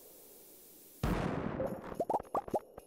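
A bomb explodes with a loud, rumbling burst.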